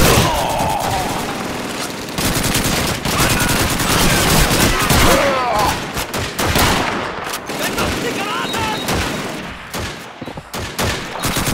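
Gunshots crack rapidly, one after another.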